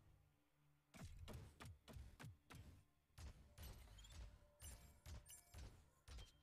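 A gun fires in quick bursts of shots.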